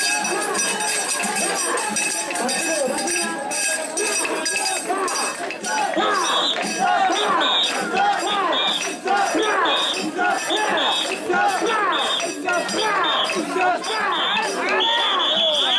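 A large crowd of men chants loudly and rhythmically outdoors.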